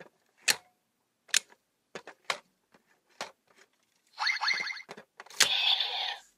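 Plastic pieces click sharply as a toy part is pushed into place.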